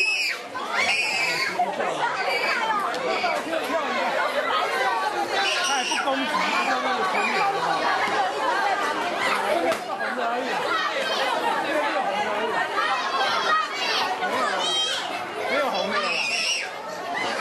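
Many young children shout and chatter loudly close by.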